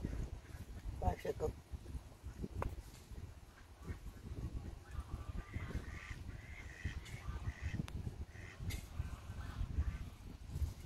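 Geese honk nearby.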